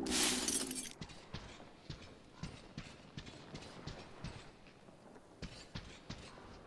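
Footsteps thud softly on a hard floor.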